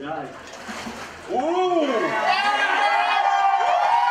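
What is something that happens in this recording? Water splashes loudly as a person is lifted out of it.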